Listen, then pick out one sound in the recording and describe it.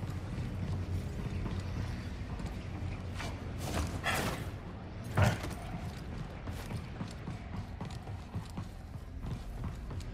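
Quick footsteps clatter on a metal floor.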